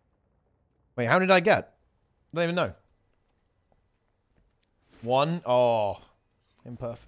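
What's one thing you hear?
A young man talks casually into a close microphone, in short bursts.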